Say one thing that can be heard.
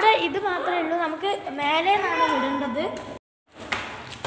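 A boy talks with animation close to the microphone.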